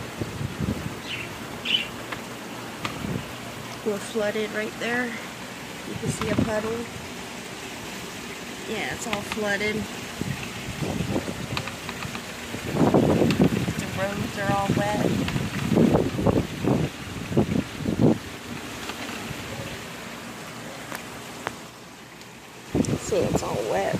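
Rain falls outdoors.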